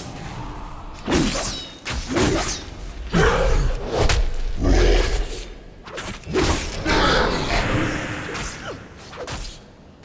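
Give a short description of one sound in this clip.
Magic spells whoosh and burst.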